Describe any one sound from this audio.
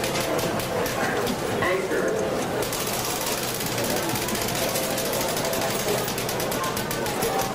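Slot machines chime and jingle.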